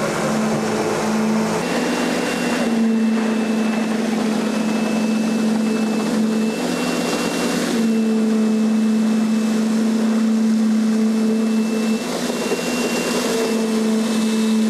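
A concrete vibrator hums steadily with a high motor whine.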